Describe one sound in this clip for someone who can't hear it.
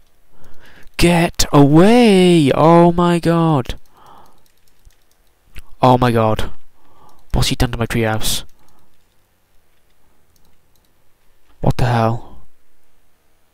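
A teenage boy talks loudly and with animation into a close microphone.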